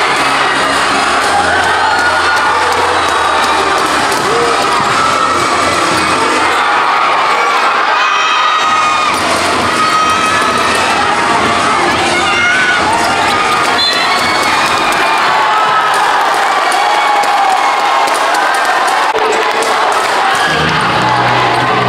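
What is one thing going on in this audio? A large crowd cheers and chatters in an echoing gym.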